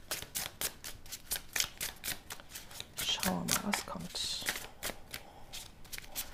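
Playing cards shuffle and rustle in hands.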